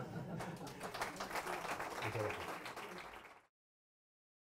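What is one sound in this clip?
An audience claps steadily, then stops abruptly.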